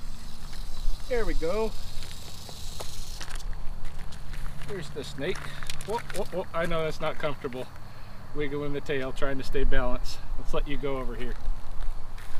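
A man talks calmly nearby, outdoors.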